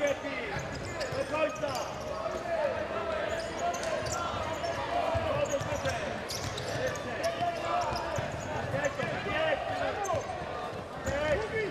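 A ball is kicked with thuds.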